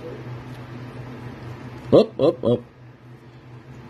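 A card slides against another card.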